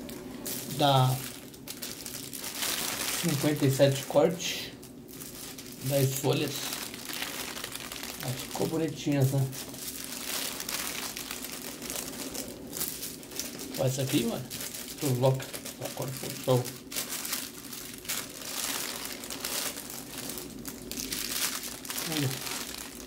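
Fabric rustles and flaps as it is unfolded.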